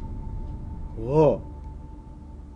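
A man speaks in a low voice, close by.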